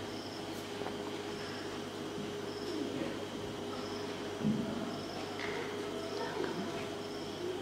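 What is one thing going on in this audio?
A man speaks quietly through a microphone.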